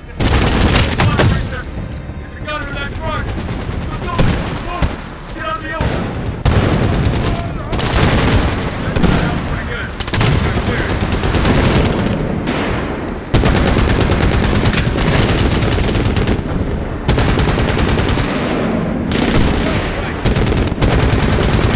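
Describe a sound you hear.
Rifles fire in loud rapid bursts, close by.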